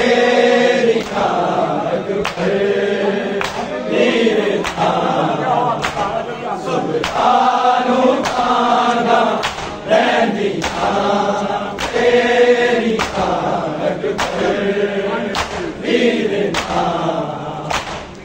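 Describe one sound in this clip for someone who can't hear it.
Men beat their chests in rhythm with sharp slaps.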